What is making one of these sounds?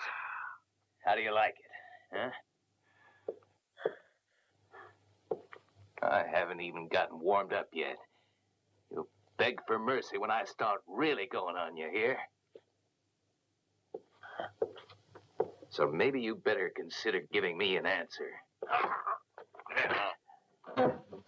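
A man speaks calmly and menacingly.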